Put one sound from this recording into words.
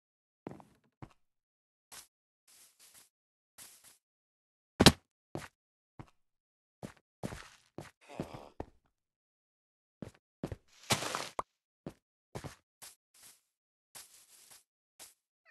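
Short crunching thuds sound as blocks are dug and broken in a game.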